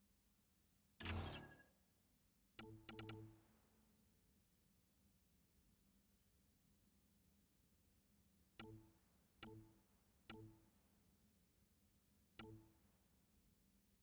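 Game menu interface sounds click and chime as selections change.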